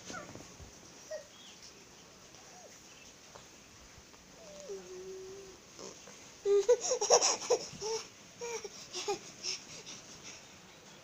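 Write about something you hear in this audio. A baby babbles and squeals close by.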